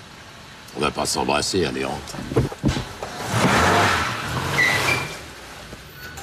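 A man answers from inside a car.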